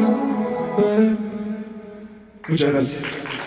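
A young man sings into a microphone over loudspeakers.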